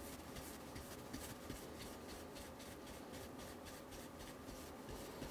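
A brush scrubs lightly and rhythmically across a small board.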